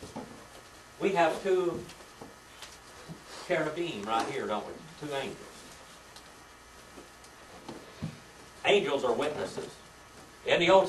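An elderly man speaks calmly, in short bursts.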